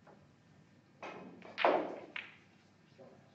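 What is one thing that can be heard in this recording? Snooker balls click together as a referee settles the pack of reds.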